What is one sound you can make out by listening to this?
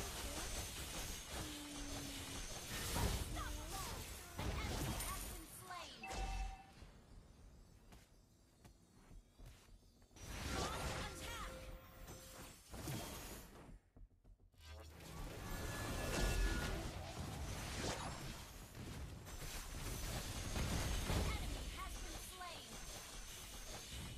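Magic blasts and sword strikes clash in a fast video game battle.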